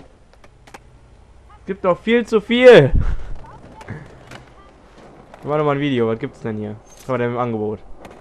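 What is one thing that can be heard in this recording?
Skateboard wheels roll over pavement.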